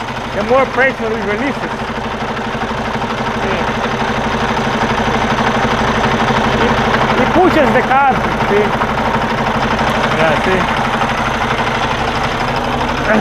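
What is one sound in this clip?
A diesel engine idles with a steady rumbling throb.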